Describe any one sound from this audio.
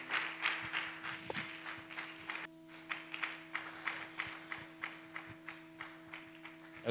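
A crowd claps hands in a steady rhythm.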